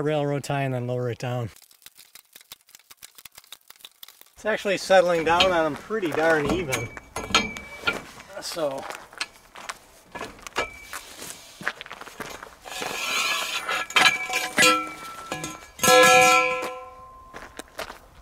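A metal bar clanks and scrapes against steel.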